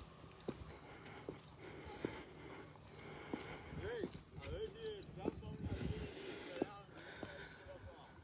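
Wind blows outdoors, rumbling low against the microphone.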